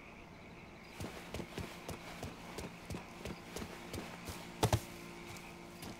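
Footsteps thud quickly on soft ground.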